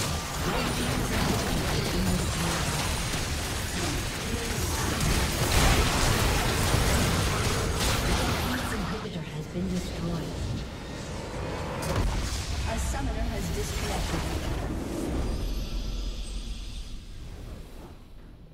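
Game combat sound effects clash, zap and burst loudly.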